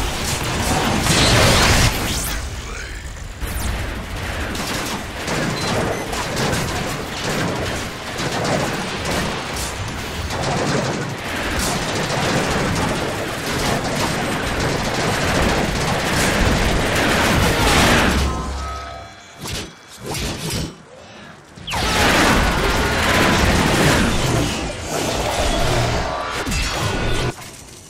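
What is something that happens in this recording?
Heavy metal robots clash and smash in a fight, with loud blasts and impacts.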